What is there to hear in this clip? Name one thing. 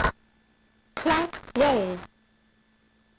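A short electronic jingle plays with wobbling notes.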